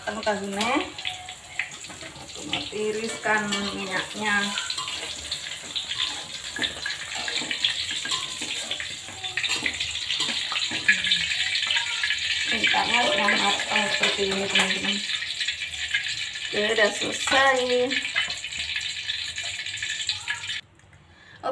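Oil sizzles and crackles loudly in a wok.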